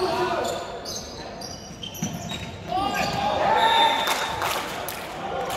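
Young players shout and call out to each other in a large echoing gym.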